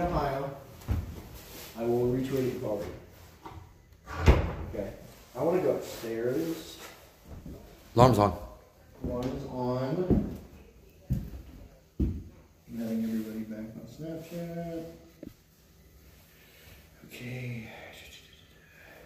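A man speaks quietly nearby, in short phrases.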